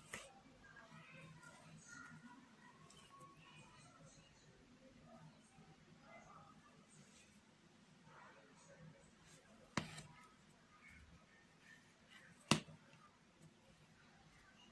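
Thread rustles softly as it is pulled through cloth.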